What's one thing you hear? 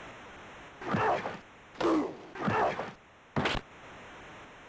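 A hockey video game plays short, sharp electronic sound effects in quick bursts.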